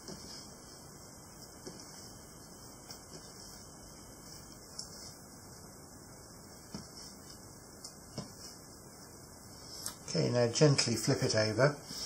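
Dough thuds and slaps softly on a countertop.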